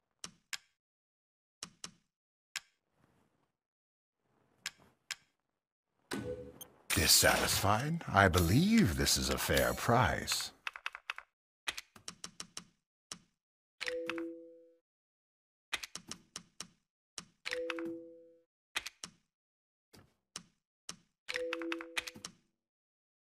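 Soft menu clicks tick at an uneven pace.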